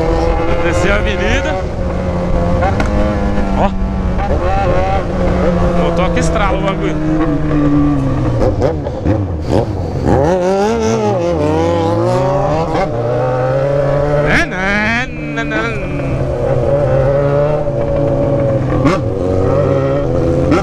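A motorcycle engine roars close by, its pitch rising and falling as it speeds up and shifts gears.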